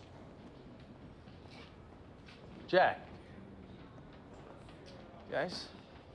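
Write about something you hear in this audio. Footsteps sound on a hard floor in an echoing hall.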